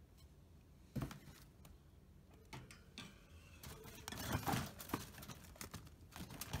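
A rabbit's paws scrabble and thump on a wire cage floor.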